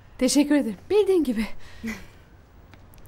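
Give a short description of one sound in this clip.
A woman speaks warmly and close by.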